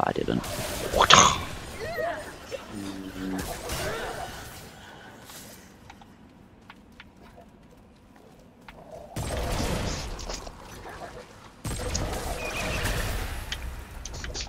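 A blade swings and strikes flesh with wet impacts.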